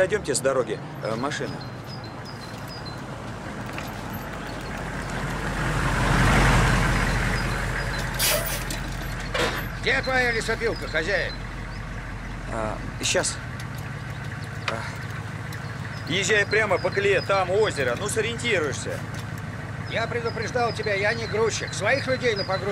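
A middle-aged man speaks calmly outdoors.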